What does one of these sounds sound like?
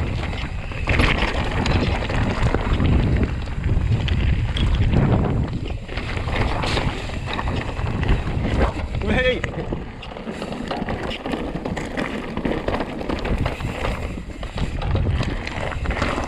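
A bike chain and frame rattle over bumps.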